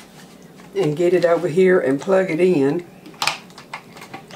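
A latch snaps shut on a pot lid.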